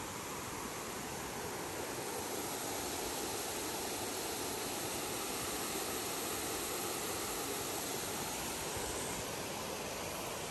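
Water rushes steadily over a weir nearby.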